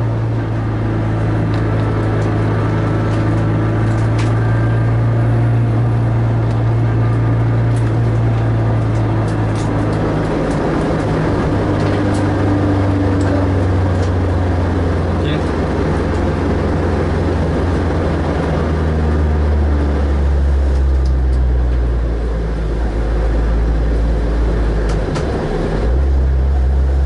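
Tyres roar on the asphalt.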